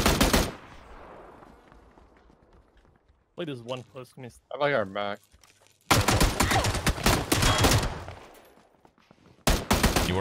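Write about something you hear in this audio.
Gunshots ring out in rapid bursts with echoing reverberation.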